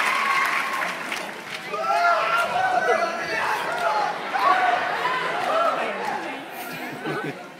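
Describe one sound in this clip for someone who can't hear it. Young performers sing and shout together from a stage, heard from across a large echoing hall.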